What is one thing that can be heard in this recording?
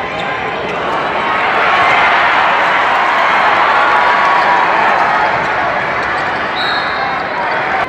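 A crowd roars loudly as play builds toward the basket.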